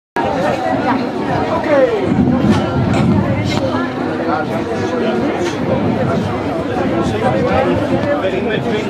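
An accordion plays a lively tune outdoors.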